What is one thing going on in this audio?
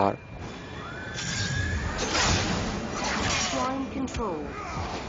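Magic spells burst with a loud whooshing crackle.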